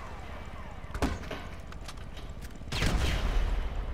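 Gunshots crack loudly, a few times.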